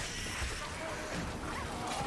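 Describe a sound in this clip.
A blade swings and hits a creature in a fight.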